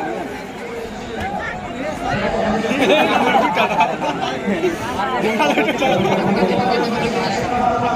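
A large crowd shouts and cheers outdoors, growing louder.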